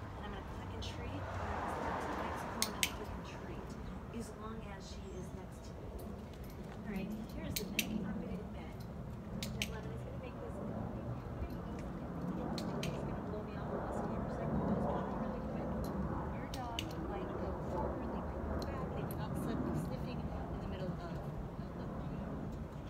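A woman talks to a dog in a soft, encouraging voice, a little way off outdoors.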